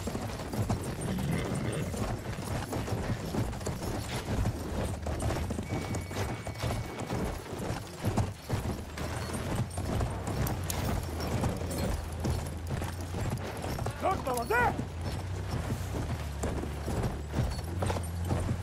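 Horse hooves pound rapidly on sand.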